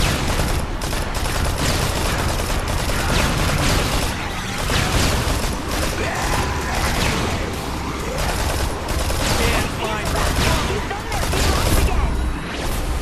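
Rapid gunshots fire again and again.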